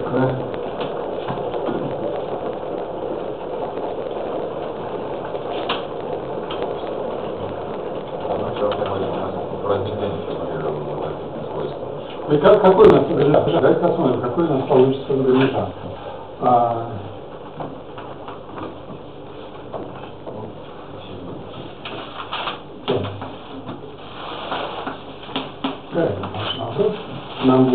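A man lectures in an echoing room.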